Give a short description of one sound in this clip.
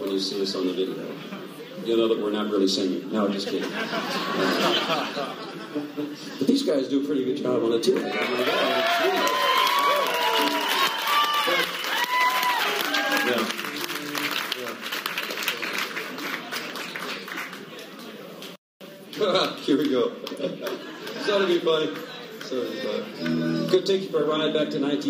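An older man speaks into a microphone, heard over loudspeakers.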